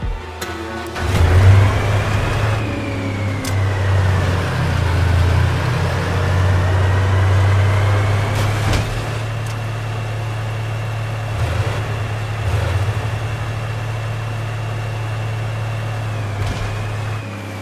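A heavy vehicle engine rumbles low and steadily, revving up at first and then idling.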